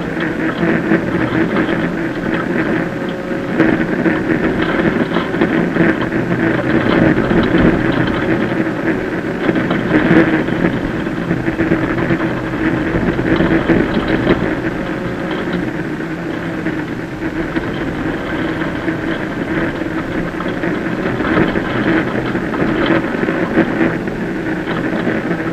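Tyres crunch and rumble over a gravel road.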